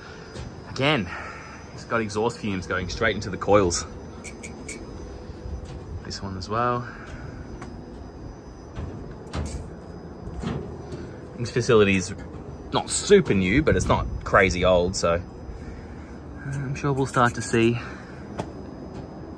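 Outdoor air conditioning units hum steadily.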